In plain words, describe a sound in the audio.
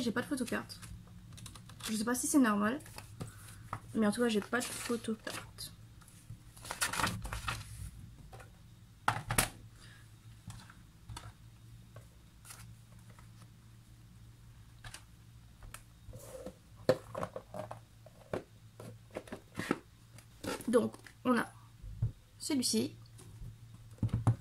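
Paper rustles as a booklet is handled.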